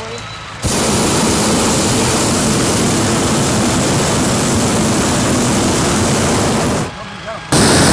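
A hot air balloon burner roars loudly with a steady rushing blast.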